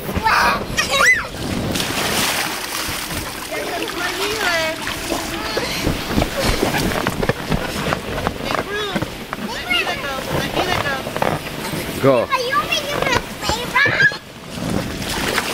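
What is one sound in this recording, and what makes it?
Water splashes as children slide down into a pool.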